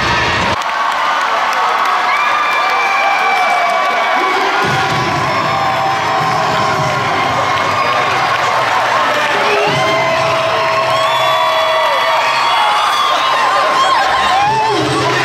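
A large crowd cheers and claps in a big echoing hall.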